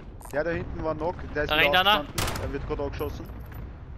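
A rifle fires a few sharp shots.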